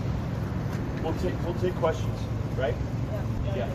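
A man speaks into microphones outdoors.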